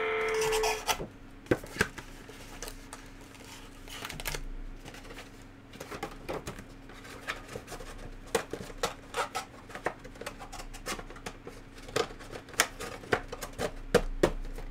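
Foil card packs crinkle and rustle as hands tear them open.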